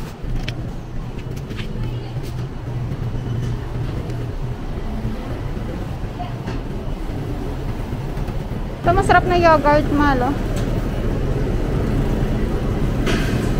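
A shopping cart rolls and rattles over a hard floor.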